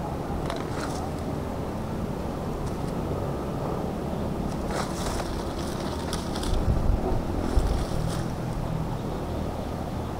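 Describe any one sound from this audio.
Leaves and stalks rustle as they are bundled.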